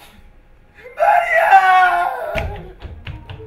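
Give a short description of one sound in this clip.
A man cries out in anguish.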